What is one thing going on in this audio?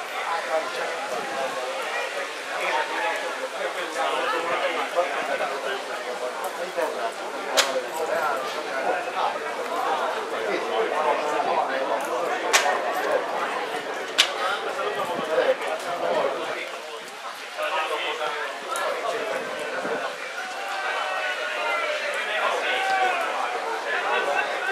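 Spectators chatter and call out outdoors.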